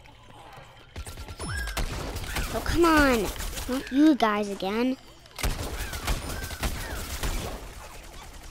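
A blaster fires rapid bursts of shots.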